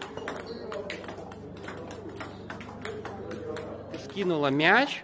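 Table tennis balls click rapidly against a table and paddles.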